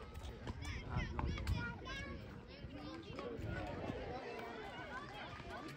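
Young children shout and chatter outdoors nearby.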